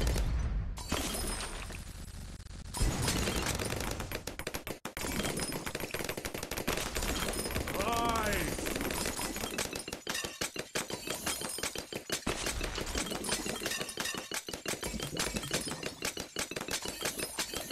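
A rapid machine gun fires in quick, steady bursts.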